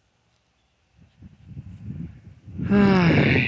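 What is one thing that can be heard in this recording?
A dog rustles through dry grass.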